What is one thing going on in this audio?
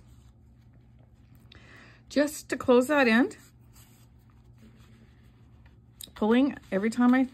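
Yarn rustles softly as it is pulled through knitted fabric.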